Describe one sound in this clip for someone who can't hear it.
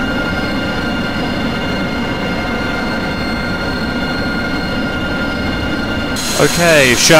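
Jet engines whine steadily nearby.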